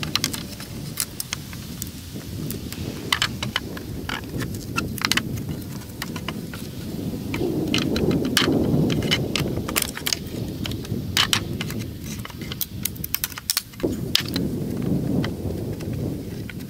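A metal bar creaks and squeals against wood.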